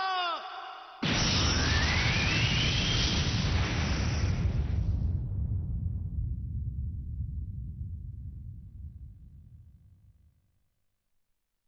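A huge explosion bursts with a sudden roar, then rumbles deeply and slowly fades away.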